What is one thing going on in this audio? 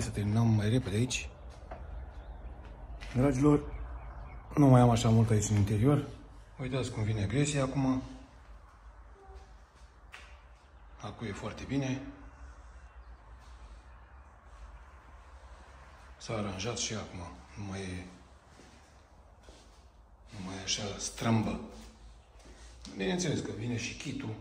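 A man talks calmly and close to the microphone, in short bursts with pauses.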